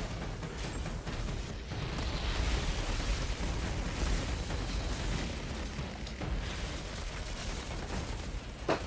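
Guns fire in rapid bursts with loud, crackling blasts.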